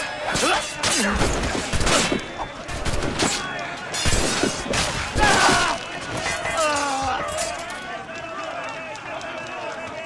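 Men shout and yell in battle.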